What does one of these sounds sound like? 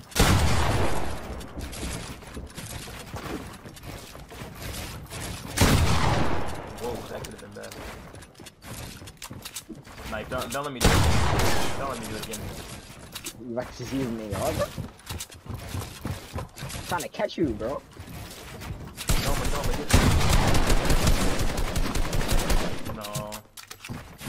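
Game gunfire and building clatter pound rapidly.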